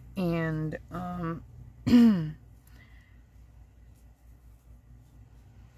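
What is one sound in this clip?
Fabric rustles softly as hands press and smooth it.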